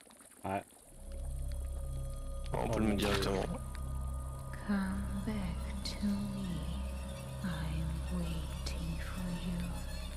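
A cauldron of liquid bubbles and churns close by.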